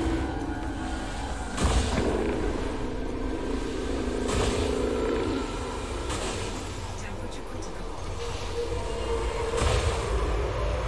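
Laser blasts zap in sharp bursts.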